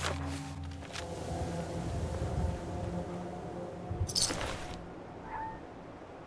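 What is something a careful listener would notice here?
Footsteps run along a hard path.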